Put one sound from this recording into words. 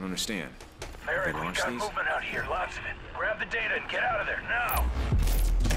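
A man speaks urgently over a radio.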